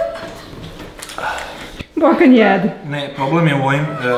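A young woman laughs nearby.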